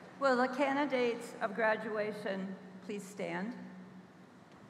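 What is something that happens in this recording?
A woman speaks calmly through a microphone over loudspeakers in a large hall.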